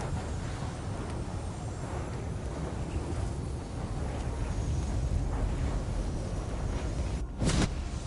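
Fiery blasts crackle and burst in quick succession.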